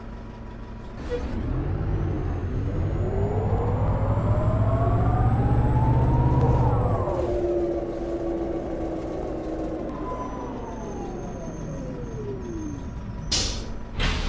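A bus engine hums and rises in pitch as the bus speeds up, then winds down as it slows.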